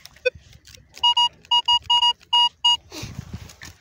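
A metal detector beeps in short repeated pitched tones.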